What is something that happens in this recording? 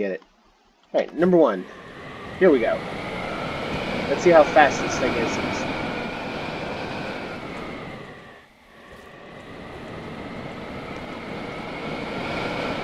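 Rocket thrusters roar steadily, briefly dipping before swelling again.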